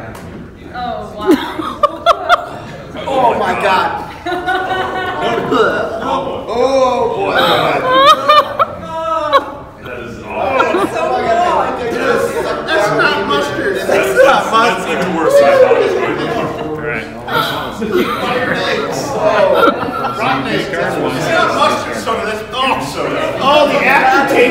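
Several men talk and laugh loudly nearby.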